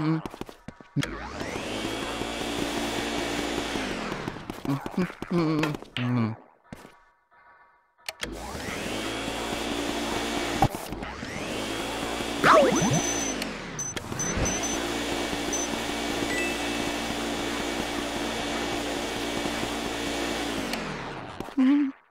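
A vacuum cleaner drones loudly with a steady whoosh.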